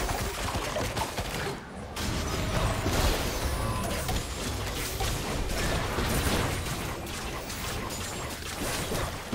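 Magic spells crackle and explode in a fast battle.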